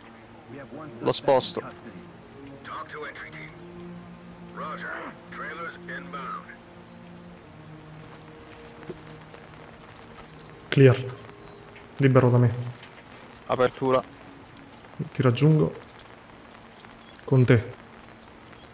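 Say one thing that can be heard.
A young man talks casually into a close microphone, in short bursts.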